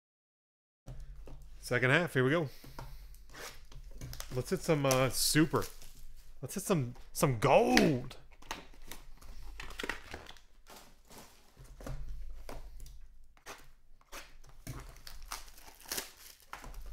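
Small cardboard boxes rustle and tap as hands handle them on a table.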